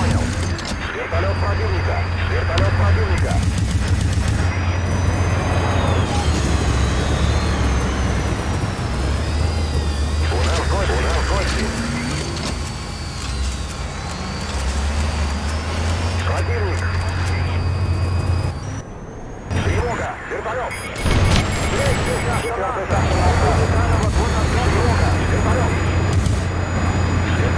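A helicopter's rotor thumps loudly.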